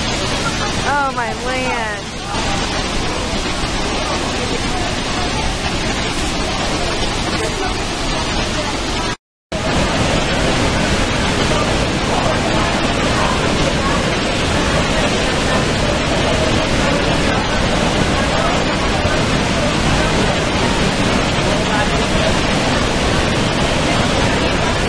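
A waterfall roars heavily and steadily close by.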